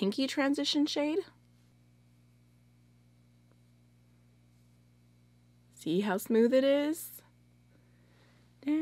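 A young woman talks close to a microphone, calmly and clearly, in short bursts with pauses.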